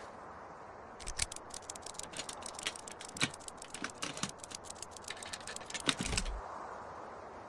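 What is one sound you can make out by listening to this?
Rapid rustling clicks sound as something is searched.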